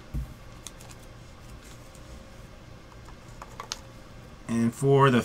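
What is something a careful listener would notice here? Cards and packaging rustle and click softly as they are handled.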